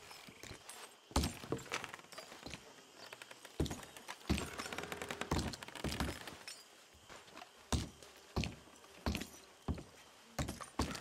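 Boots thud in steady footsteps on a wooden floor.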